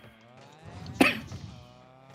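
A car thumps loudly against a wall.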